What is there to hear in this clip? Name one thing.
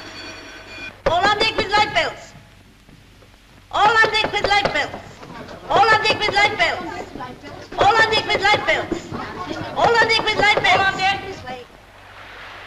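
A middle-aged woman shouts loudly and excitedly nearby.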